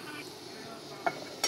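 A metal lid clinks down onto a pot.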